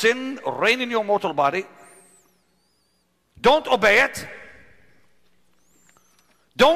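An elderly man preaches loudly and with passion through a microphone, his voice echoing in a large hall.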